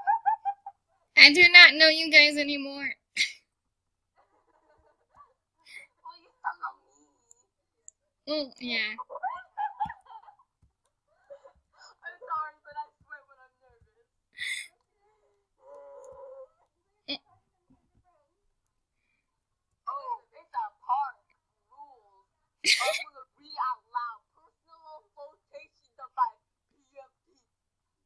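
A young woman talks with animation over an online call.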